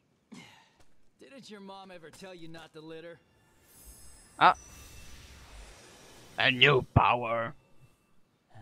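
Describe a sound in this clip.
A young man speaks calmly and mockingly.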